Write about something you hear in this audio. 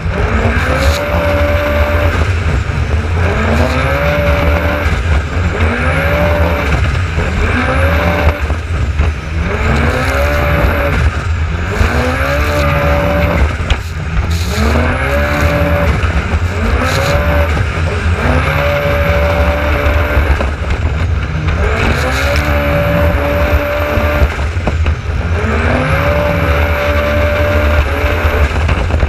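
A personal watercraft engine revs up and down over and over.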